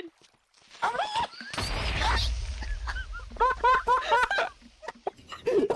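An explosion booms and rumbles.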